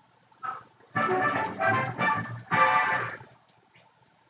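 A short, bright video game victory fanfare plays.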